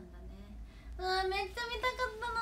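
A young woman talks brightly close to the microphone.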